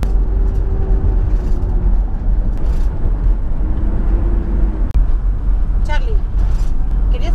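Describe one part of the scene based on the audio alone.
A car engine hums with a steady low road rumble.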